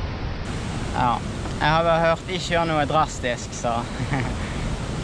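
A young woman answers cheerfully, close to the microphone.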